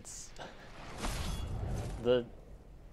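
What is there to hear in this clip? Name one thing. A staff whooshes through the air.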